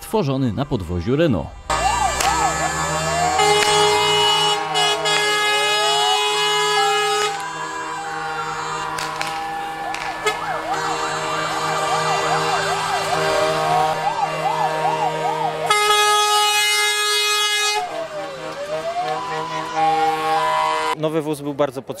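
Fire engine sirens wail, rising and falling.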